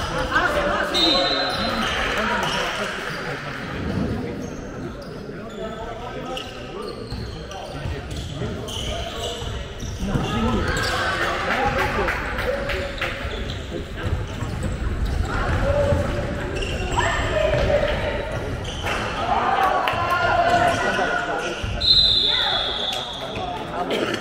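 Sneakers squeak on a sports hall floor.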